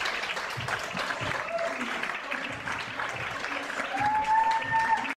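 A large audience claps and cheers in a room.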